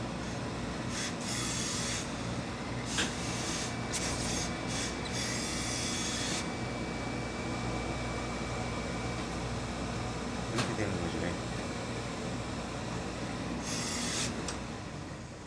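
A steam iron hisses in short bursts.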